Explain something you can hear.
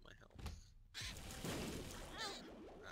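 A rumbling explosion bursts with splatters.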